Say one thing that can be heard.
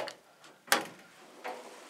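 A button clicks as it is pressed.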